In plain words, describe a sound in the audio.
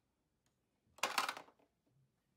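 A small plastic toy knocks against a plastic toy house.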